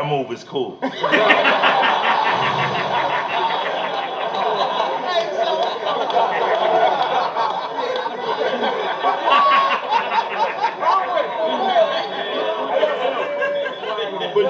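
A crowd cheers and shouts in the background.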